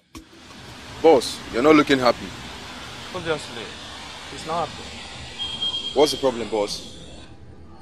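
A young man speaks in a tense voice.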